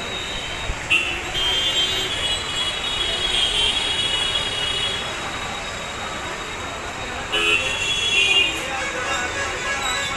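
Vehicle horns honk now and then.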